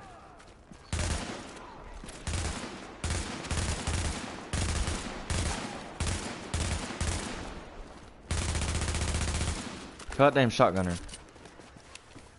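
Rifle fire rattles in rapid bursts.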